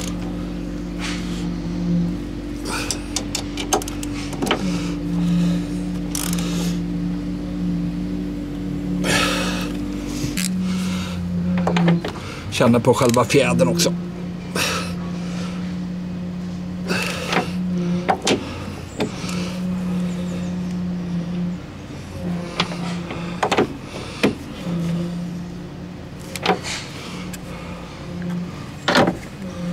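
Metal tools clink and knock against engine parts.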